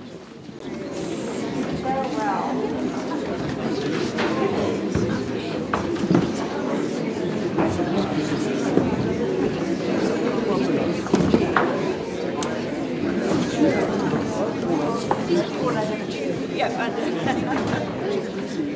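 A large crowd of men and women chatter and greet each other in an echoing hall.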